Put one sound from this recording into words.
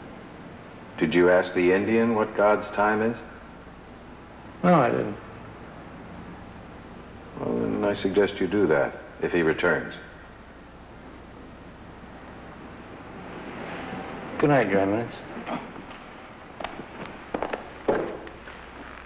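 A man speaks in a low, serious voice, in turns with pauses.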